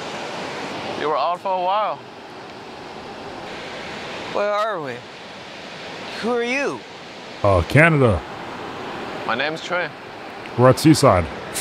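Another young man answers calmly.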